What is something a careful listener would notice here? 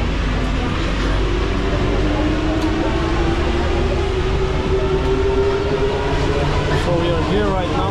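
An electric motor whines, rising in pitch as the train speeds up.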